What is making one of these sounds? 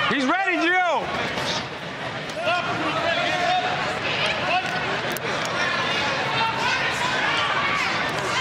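A crowd cheers and shouts in a large echoing arena.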